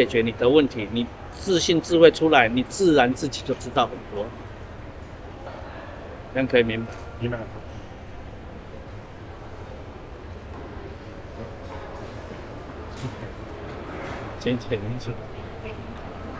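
An elderly man speaks calmly into a clip-on microphone.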